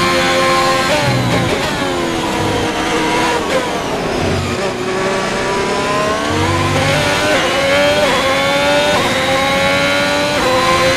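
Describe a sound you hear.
Gears shift with quick blips of the engine.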